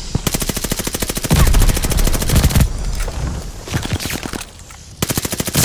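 An automatic gun fires rapid bursts of shots close by.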